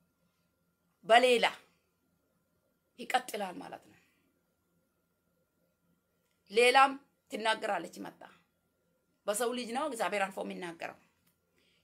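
A woman speaks calmly in short bursts with pauses, close to the microphone, as over an online call.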